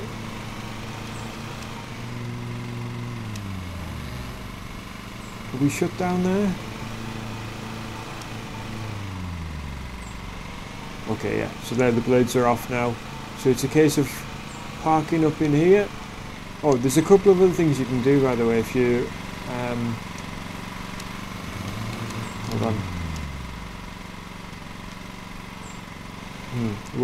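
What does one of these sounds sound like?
A lawn mower engine hums steadily, its pitch rising and falling.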